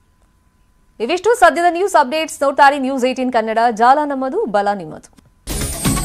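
A young woman speaks clearly and evenly into a close microphone.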